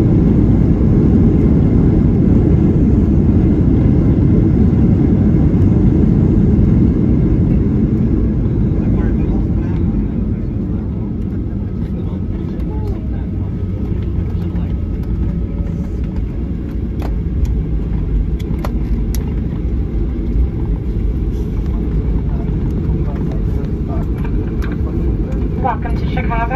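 Airliner wheels rumble and thump over the runway.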